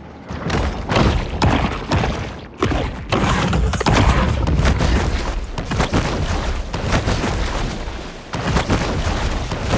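Water churns and splashes as a shark thrashes and swims.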